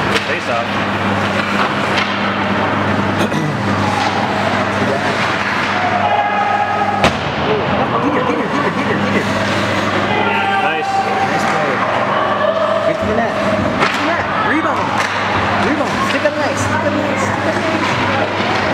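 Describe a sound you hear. Ice hockey skates scrape and carve across ice in an echoing indoor rink.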